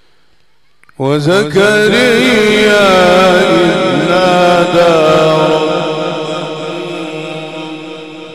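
An elderly man chants loudly and melodically through a microphone with echo.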